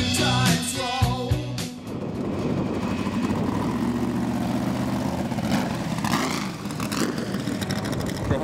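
A racing car engine roars loudly as the car drives past.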